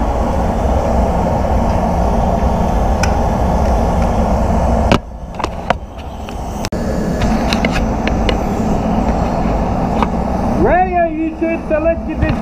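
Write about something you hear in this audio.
Air rushes and hisses steadily through a breathing hose close by.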